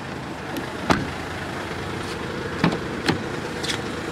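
A car door handle clicks and the door opens with a clunk.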